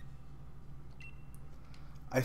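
A short electronic menu blip sounds as a selection is made.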